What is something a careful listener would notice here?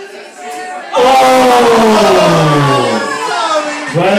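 A man shouts out loudly in a long, falling cry.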